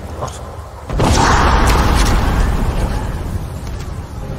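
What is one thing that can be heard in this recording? A magical blast crackles and roars loudly.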